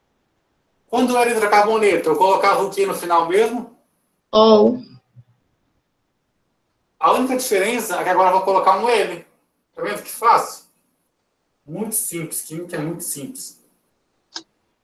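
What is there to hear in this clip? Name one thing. A young man speaks calmly through an online call, explaining.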